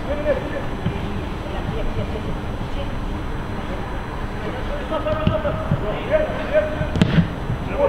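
Young players shout to each other across an open outdoor pitch.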